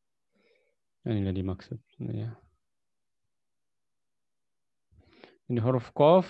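A man speaks slowly over a microphone, as if teaching, with pauses.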